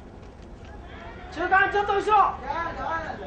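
A middle-aged man shouts loudly up close.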